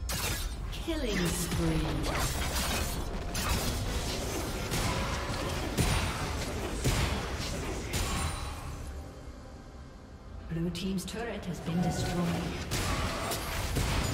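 Game sound effects clash, zap and crackle in a fight.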